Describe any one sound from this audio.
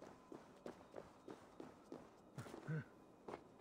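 Hands grip and knock against a wooden frame while climbing.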